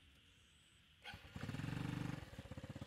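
A small motorcycle engine starts up.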